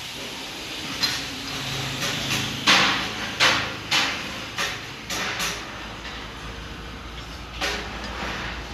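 Metal parts clank and knock against each other.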